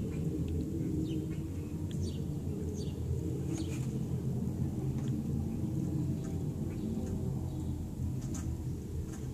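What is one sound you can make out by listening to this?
Hens cluck and murmur softly close by.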